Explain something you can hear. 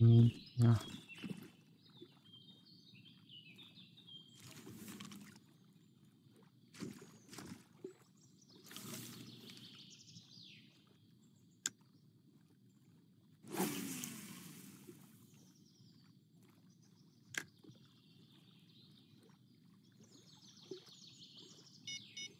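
Water laps gently.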